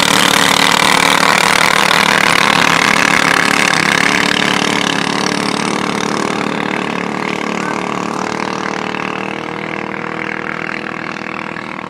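Jet ski engines roar and whine as they speed away, slowly fading.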